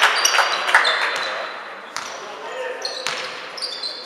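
A basketball bounces on a hall floor as a player dribbles.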